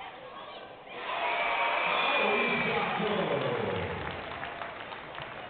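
A crowd cheers loudly in a large echoing arena and then dies down.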